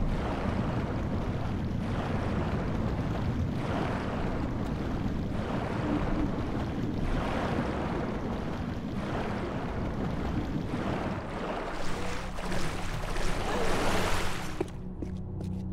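A waterfall roars loudly nearby.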